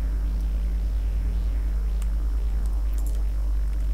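A short electronic click sounds.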